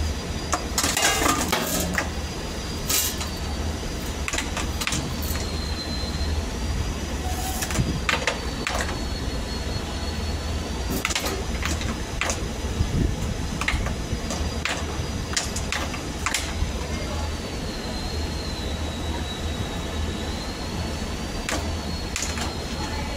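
Metal parts clink and scrape.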